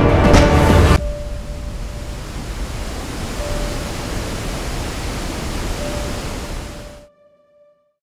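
A waterfall roars as water rushes over rocks.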